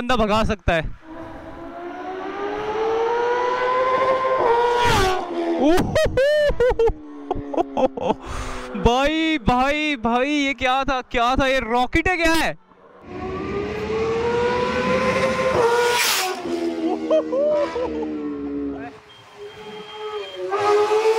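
Motorcycle engines rev hard and roar past close by.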